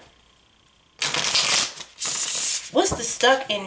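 Playing cards are shuffled with a soft riffling.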